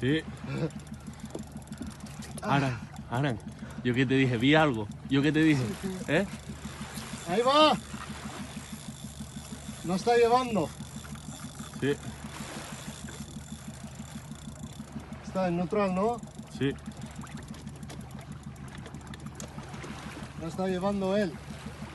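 A fishing reel's drag clicks rapidly as line is pulled out.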